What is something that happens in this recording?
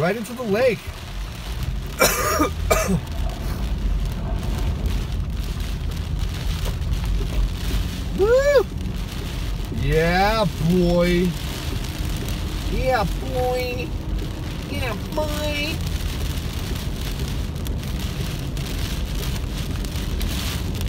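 Tyres hiss and swish on a wet road.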